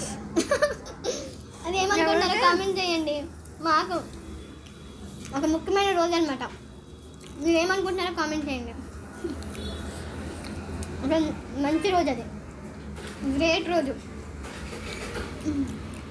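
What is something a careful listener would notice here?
A second young woman answers in a calm voice close by.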